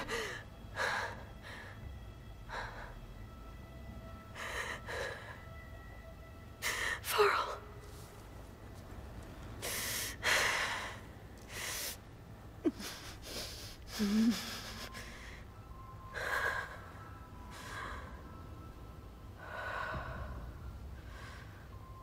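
A young woman speaks quietly and sadly.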